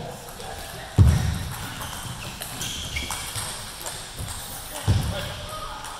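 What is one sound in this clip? A ping-pong ball clicks sharply off paddles and a table.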